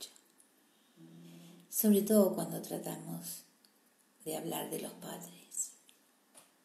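An older woman speaks calmly and close up, in short phrases.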